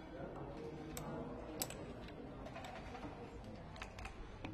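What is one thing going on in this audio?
Checkers click as a player moves them across a game board.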